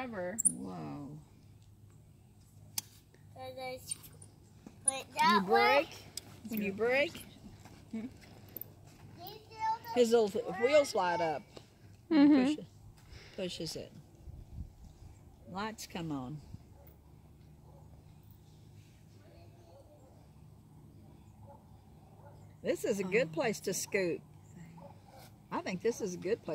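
A young child talks and calls out nearby.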